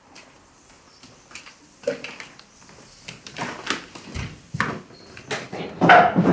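Footsteps thud hurriedly across a wooden floor.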